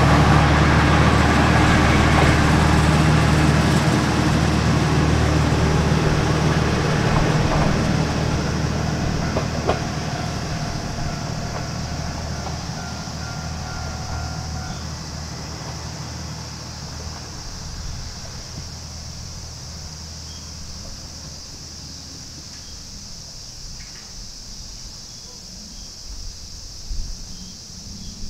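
A small diesel train rumbles away along the track, its engine slowly fading into the distance.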